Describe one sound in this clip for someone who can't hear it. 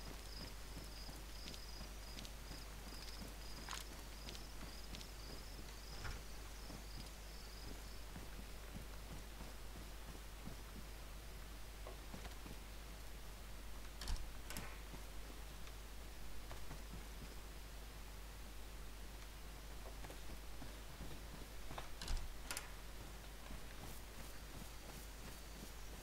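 Footsteps crunch and thud as a person walks.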